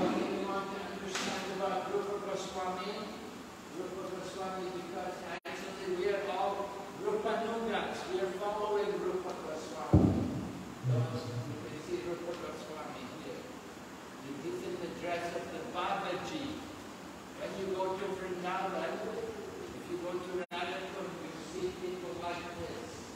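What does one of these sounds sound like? An elderly man speaks with animation through a microphone in an echoing hall.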